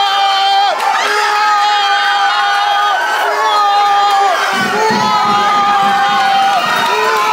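A young man sings and shouts loudly, close by.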